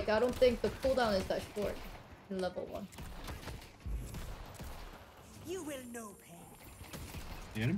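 A weapon fires rapid bursts of shots.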